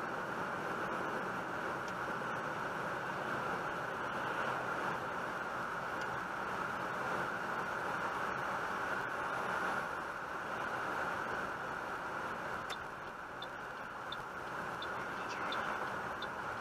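Tyres roll over a snowy road.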